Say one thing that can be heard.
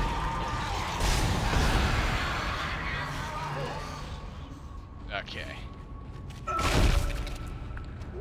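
A heavy gun fires with loud booming blasts.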